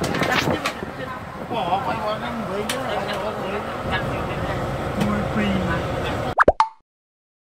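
A bus engine hums and rumbles while driving.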